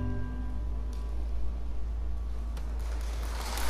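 An organ plays sustained chords.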